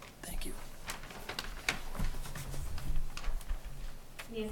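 A microphone bumps and rustles as it is handed over.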